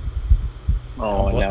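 A man speaks calmly through a microphone, close by.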